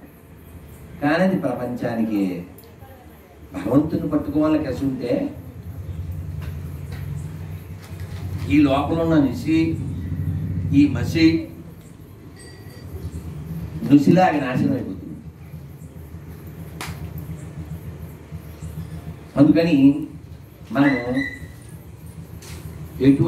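A middle-aged man speaks slowly into a microphone, in short phrases with pauses.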